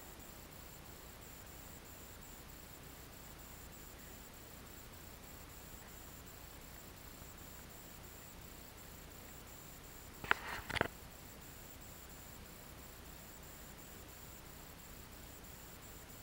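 Water laps gently against a boat's hull.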